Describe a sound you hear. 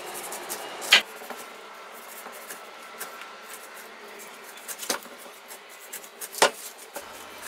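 A knife knocks against a wooden cutting board.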